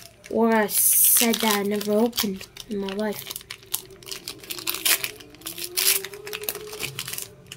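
A foil wrapper crinkles and tears close by.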